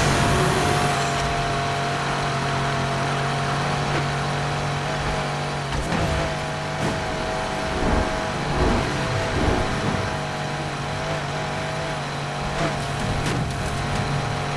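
Tyres hiss on the road.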